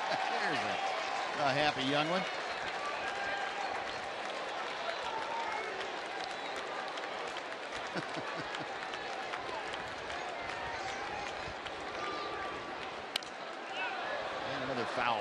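A crowd murmurs steadily in a large open stadium.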